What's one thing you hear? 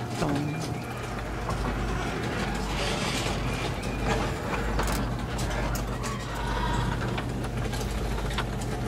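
A garage door motor hums and the door rumbles as it slowly closes.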